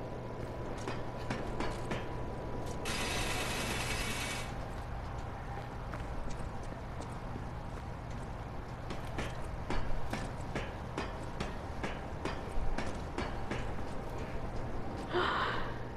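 Footsteps and climbing clank on metal scaffolding.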